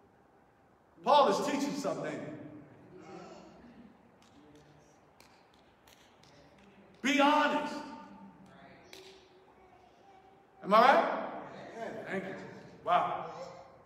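A man speaks with feeling through a microphone and loudspeakers in an echoing hall, in short bursts with pauses.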